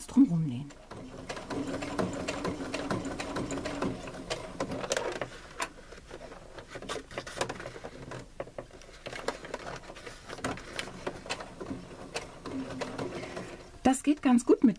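A sewing machine runs steadily, stitching with a fast whirring rattle.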